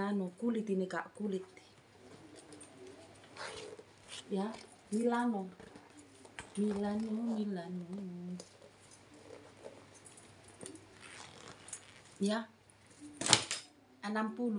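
A woman talks close by, calmly and with some animation, in short bursts.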